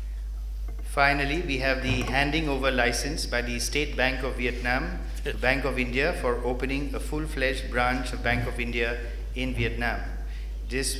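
An elderly man speaks steadily into a microphone.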